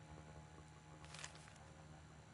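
A sheet of paper rustles briefly.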